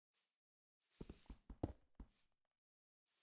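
Stone scrapes and crunches in a short burst of blows.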